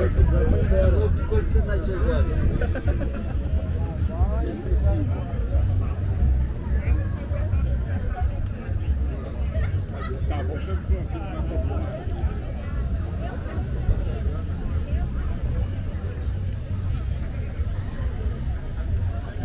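Many people chatter and call out all around outdoors.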